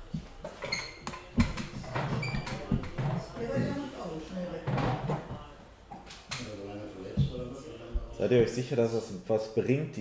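A middle-aged man talks close to a microphone.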